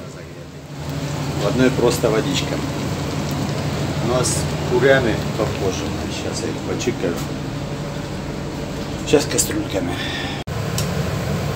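A middle-aged man talks animatedly close to the microphone.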